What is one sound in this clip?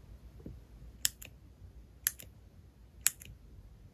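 A pencil clicks sharply as its button is pressed.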